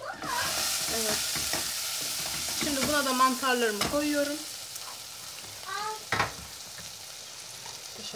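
A wooden spoon scrapes and knocks against a pan while stirring.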